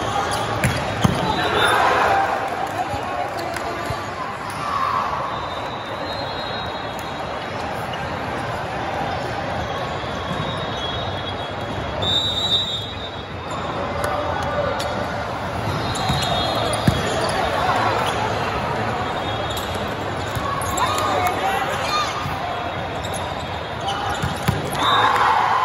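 A volleyball is struck with sharp smacks that echo in a large hall.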